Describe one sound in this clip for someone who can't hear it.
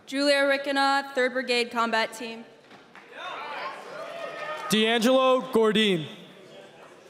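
A man shouts loudly into a microphone in a large echoing hall.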